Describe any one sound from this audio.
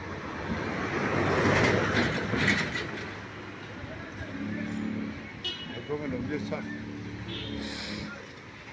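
A motorcycle engine hums nearby as it rides along the street.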